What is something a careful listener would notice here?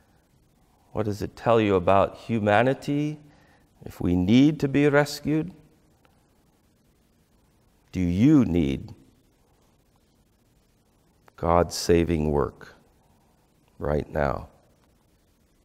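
A middle-aged man speaks through a clip-on microphone in short, animated phrases, with long pauses.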